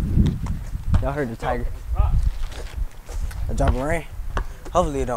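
Teenage boys call out to each other outdoors.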